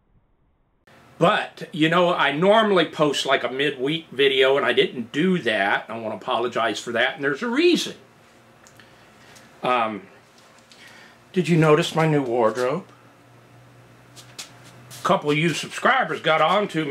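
A middle-aged man talks calmly and closely to the listener.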